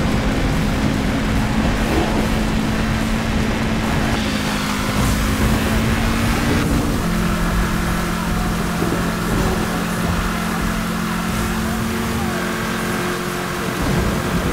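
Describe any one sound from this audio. A car engine roars steadily at high speed, shifting gear now and then.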